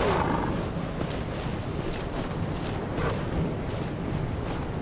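Armoured footsteps crunch through snow.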